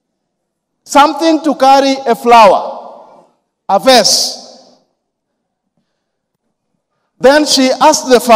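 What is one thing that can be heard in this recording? A man preaches with animation through a microphone in a reverberant hall.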